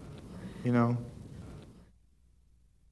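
A young man speaks briefly through a close microphone.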